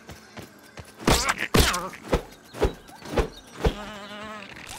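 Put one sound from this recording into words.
Heavy punches thud one after another.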